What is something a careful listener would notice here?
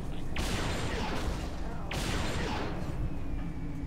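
Energy blasts burst with a loud whooshing roar.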